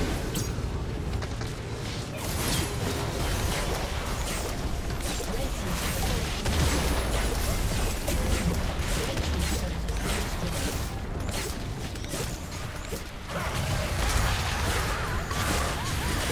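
Fantasy battle sound effects crackle, whoosh and burst rapidly.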